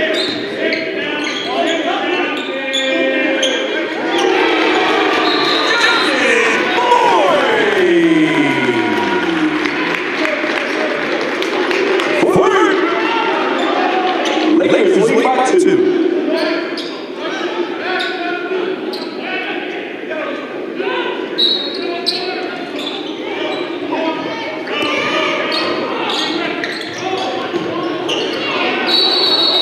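Sneakers squeak sharply on a hardwood court.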